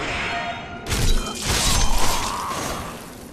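A sword swings and strikes with a sharp slash.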